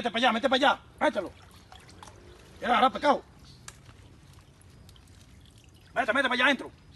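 Water splashes as a bowl scoops through a shallow stream.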